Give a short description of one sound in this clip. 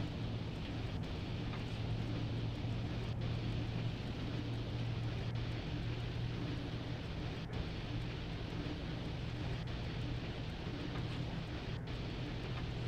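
Train wheels clack rhythmically on rail joints.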